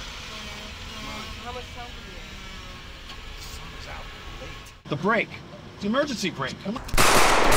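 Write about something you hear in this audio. A man talks in a car.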